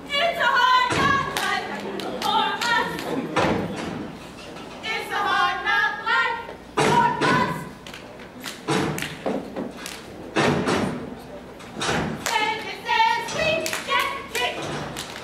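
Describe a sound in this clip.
Feet stomp on a wooden stage.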